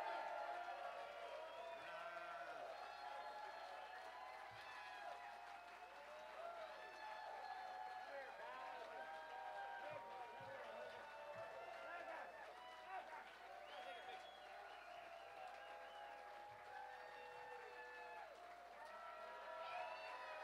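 A large crowd cheers and calls out in an echoing hall.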